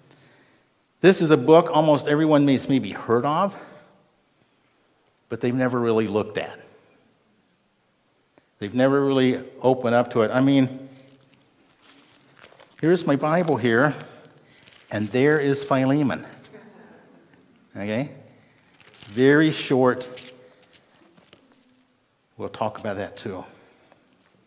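An elderly man speaks calmly in bursts with pauses, heard through a microphone.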